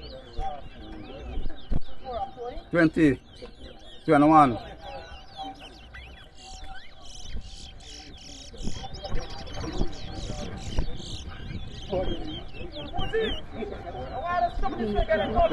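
Caged songbirds chirp and trill rapidly, close by.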